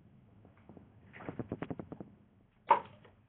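A chair creaks close by.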